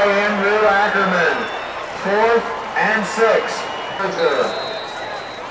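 Men shout nearby on the field.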